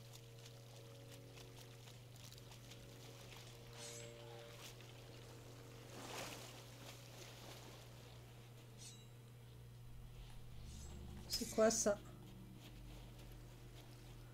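Small waves lap gently against a sandy shore.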